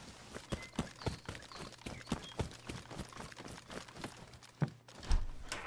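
Footsteps thud steadily on grass.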